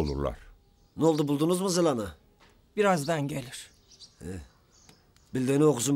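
A bearded man speaks with strained emotion.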